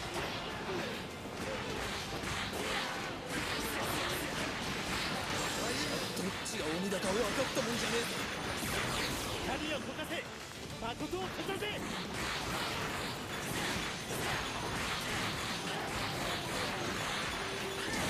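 Blades clash and strike again and again in a fast fight.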